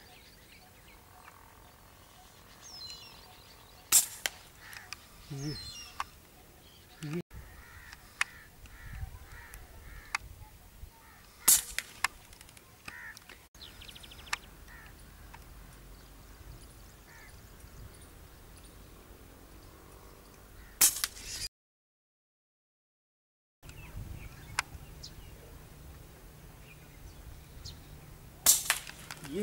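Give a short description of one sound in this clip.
Small birds chirp and call outdoors.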